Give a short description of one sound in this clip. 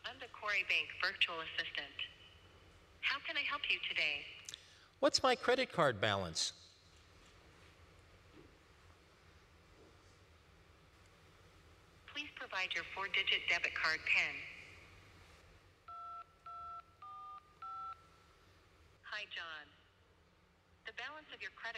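A man speaks calmly into a phone, heard through a microphone.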